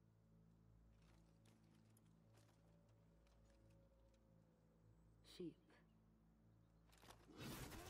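Metal armour clinks as a knight shifts.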